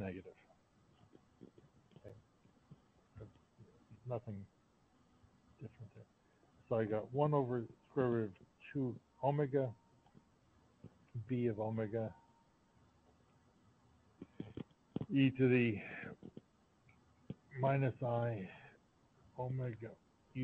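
A man speaks calmly over an online call, explaining in pauses.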